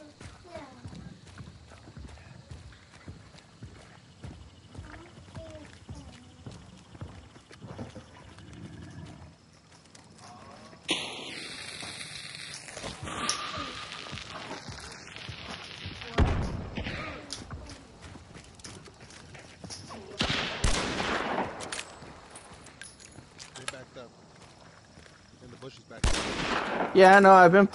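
Footsteps crunch on dirt and rubble.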